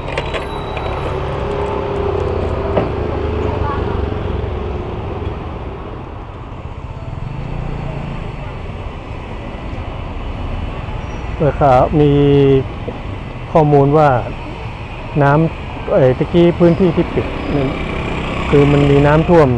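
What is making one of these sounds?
A scooter engine hums steadily while riding along a street.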